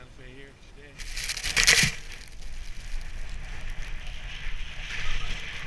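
A snowboard carves and hisses over powder snow.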